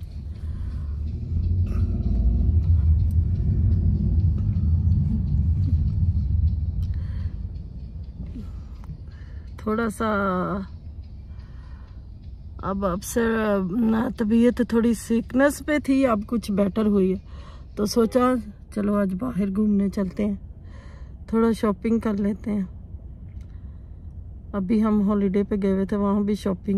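A car engine rumbles low, heard from inside the car.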